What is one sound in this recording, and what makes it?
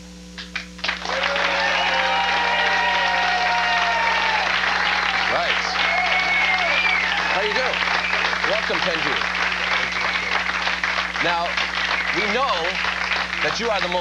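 A large crowd claps and cheers loudly.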